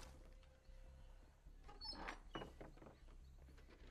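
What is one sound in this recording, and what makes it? Hands rummage through a wooden chest.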